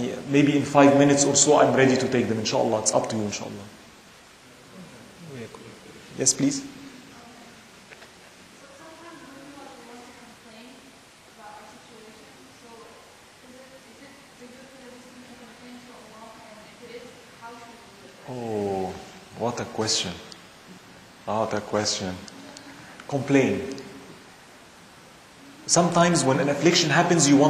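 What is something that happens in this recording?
A man speaks calmly and with animation to an audience, heard through a microphone in a large room.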